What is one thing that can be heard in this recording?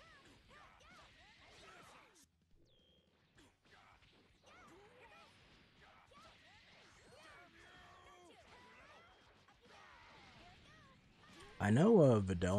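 Punches and kicks thud in quick bursts.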